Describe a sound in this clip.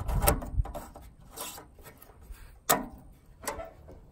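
A plastic cap clicks as it is pressed and twisted shut.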